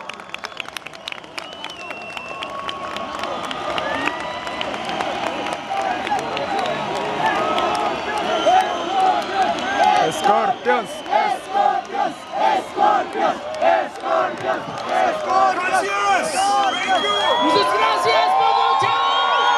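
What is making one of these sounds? A large crowd cheers and chants loudly outdoors.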